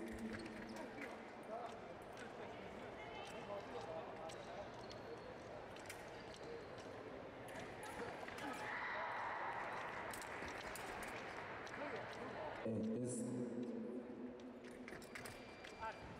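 Fencing blades click against each other.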